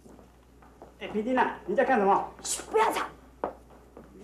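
A young woman speaks sharply and loudly.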